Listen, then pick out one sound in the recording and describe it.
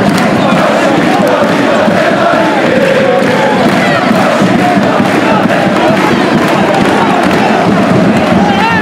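A large crowd cheers and shouts loudly in a big echoing arena.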